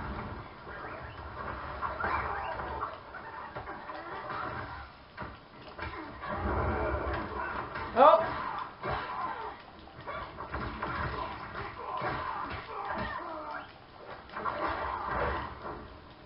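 Punches and kicks from a fighting video game thump through a television speaker.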